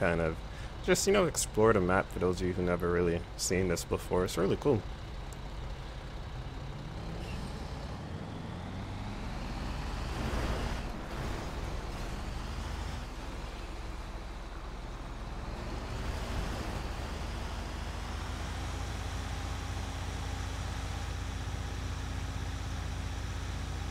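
A heavy truck engine rumbles steadily while driving.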